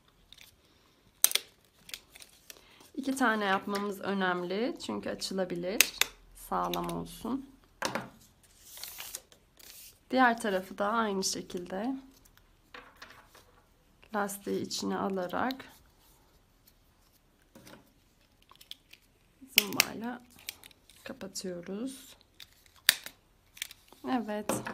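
A stapler snaps shut on paper with sharp clicks.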